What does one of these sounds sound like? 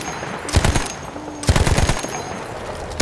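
A machine gun fires loud bursts.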